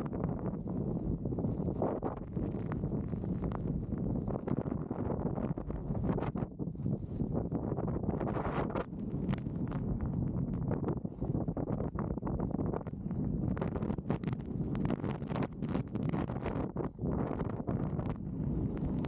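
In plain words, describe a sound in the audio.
A snowboard hisses and scrapes through snow.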